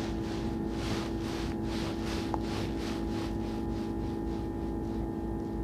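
A flag flutters in a light breeze outdoors.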